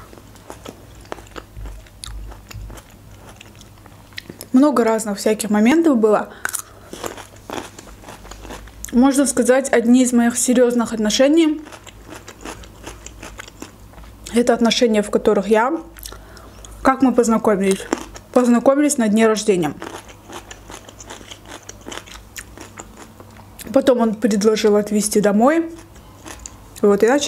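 A young woman chews food softly and smacks her lips close to a microphone.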